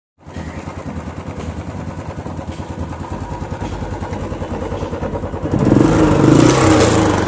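A motorcycle engine idles with a steady, fast thumping beat close by.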